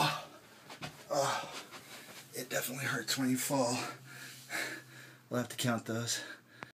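A middle-aged man talks and laughs close by.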